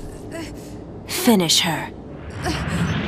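A deep, growling voice speaks slowly.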